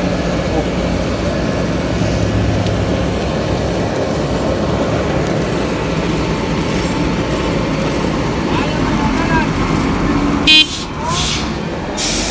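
Loose asphalt gravel crunches and scrapes under the paving machine.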